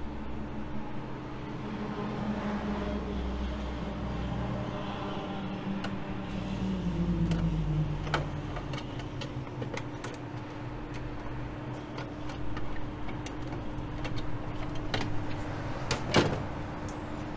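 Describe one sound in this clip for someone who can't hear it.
A screwdriver clicks and scrapes against a plastic cover.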